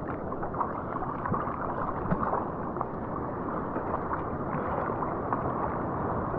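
Water sloshes and laps close by, with small splashes.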